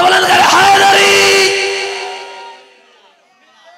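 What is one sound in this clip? A young man chants loudly through a microphone, echoing.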